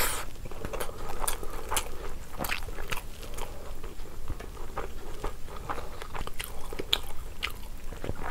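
Fingers squish and mix soft rice close up.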